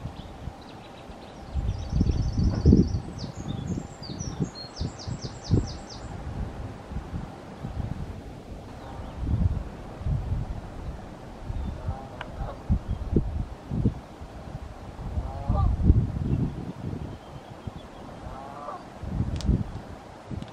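Wind gusts rumble in low, uneven bursts outdoors.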